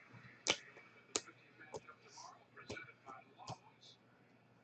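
Stiff cards tap and click softly as they are handled.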